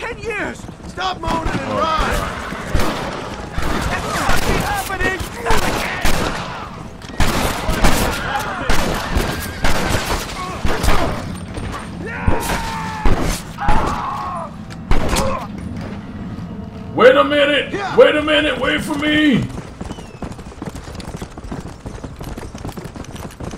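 Horse hooves gallop over dirt.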